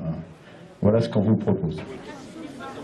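A man speaks loudly through a megaphone outdoors.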